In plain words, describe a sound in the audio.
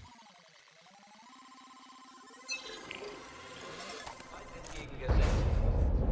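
Electronic tones warble and beep in quick steps.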